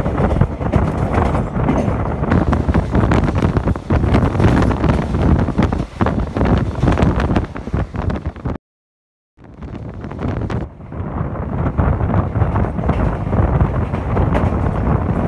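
Wind rushes past an open window of a moving train.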